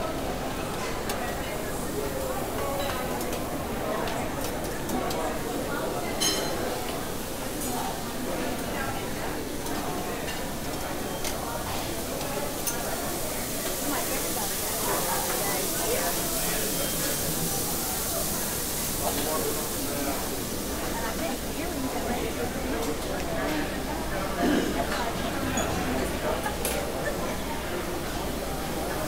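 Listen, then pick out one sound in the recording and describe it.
A crowd of people chatters indoors.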